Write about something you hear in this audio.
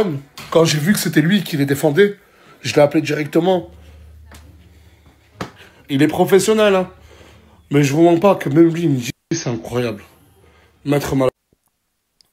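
A man talks with animation close to a phone microphone.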